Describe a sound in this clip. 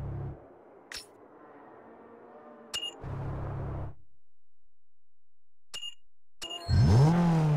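Menu clicks and short beeps sound.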